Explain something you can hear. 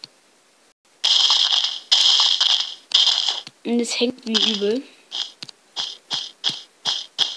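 Dirt crunches in quick bursts as blocks are dug away.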